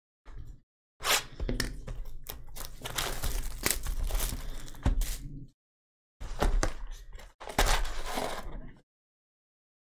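A box is torn open and its foil packs rustle.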